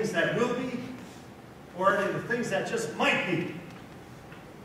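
An elderly man speaks loudly and theatrically, heard from a distance in a large hall.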